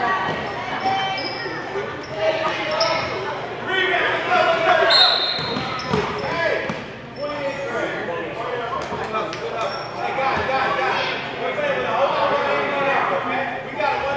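A crowd of spectators chatters and cheers throughout in an echoing gym.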